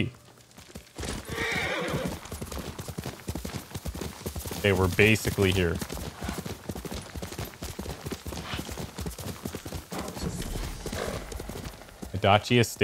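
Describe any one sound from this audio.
A horse gallops, its hooves thudding rapidly on soft ground.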